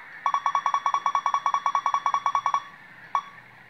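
Rapid electronic beeps sound from a video game.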